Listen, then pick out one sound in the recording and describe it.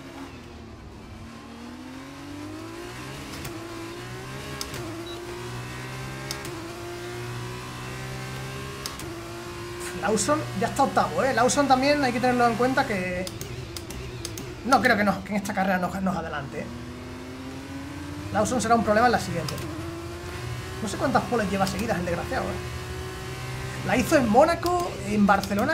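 A racing car engine whines and rises and falls in pitch as gears shift.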